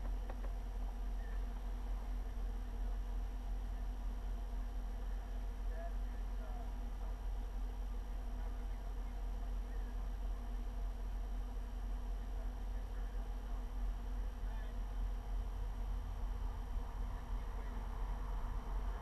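A vehicle engine hums low and steady from inside the cabin.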